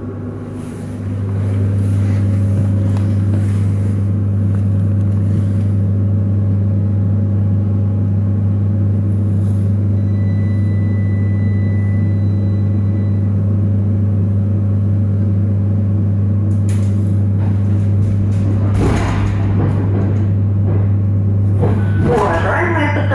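A train's engine hums steadily from inside a carriage.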